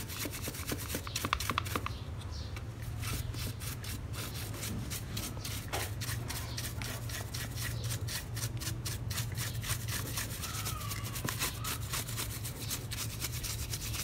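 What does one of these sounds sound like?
A stiff paintbrush scrubs and scratches against metal.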